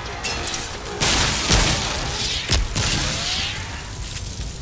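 A fiery explosion bursts with a loud boom.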